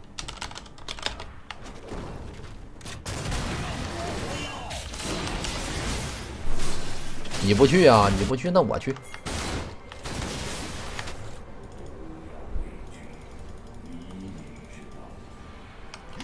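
Video game sound effects clash and boom.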